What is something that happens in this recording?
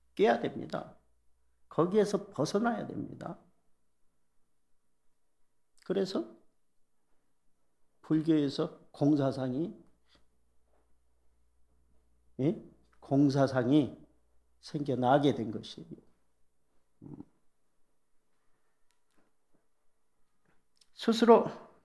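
A middle-aged man speaks calmly through a microphone, with pauses between phrases.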